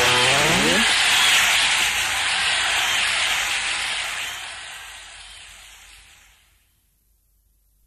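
Upbeat music plays loudly and fades away.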